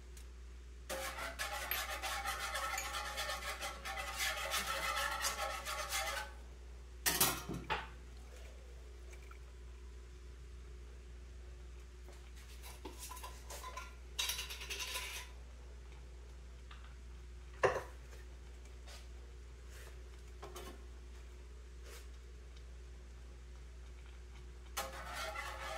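A wire whisk stirs through a thin sauce in a frying pan.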